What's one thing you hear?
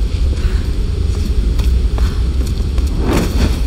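A torch flame crackles and flutters.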